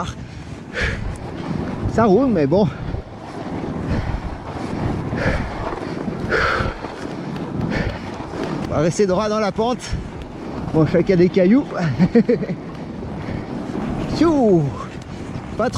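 Bicycle tyres crunch and hiss over packed snow.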